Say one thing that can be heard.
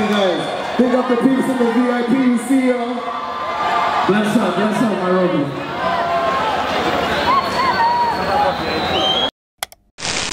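A man sings loudly through loudspeakers.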